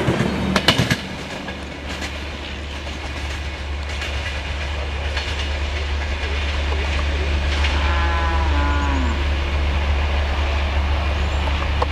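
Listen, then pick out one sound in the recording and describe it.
A train rumbles low and steady as it pulls away into the distance.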